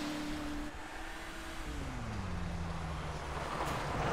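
A car engine hums and winds down.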